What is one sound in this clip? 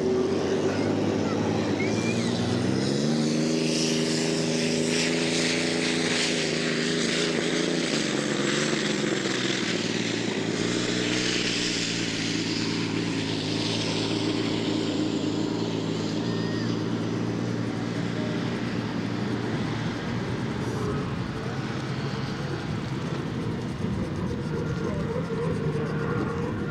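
A racing boat's engine roars loudly, its pitch rising then holding steady.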